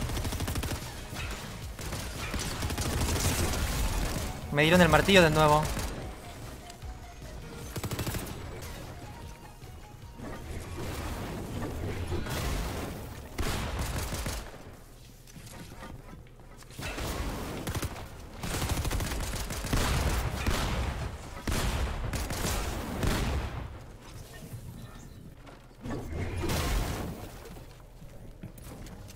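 Video game gunshots and building clatter burst in quick runs.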